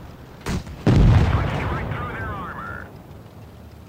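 A tank cannon fires with a loud boom that echoes away.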